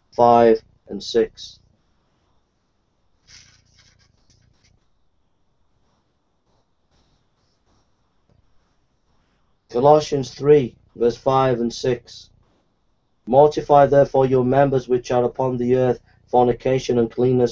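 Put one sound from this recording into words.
A middle-aged man reads aloud calmly, close to a microphone, in pauses.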